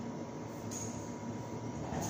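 A cloth rubs across a whiteboard.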